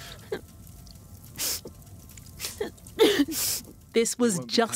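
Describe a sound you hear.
A boy sobs and gasps for breath.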